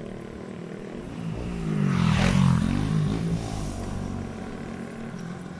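A motorbike approaches and passes by.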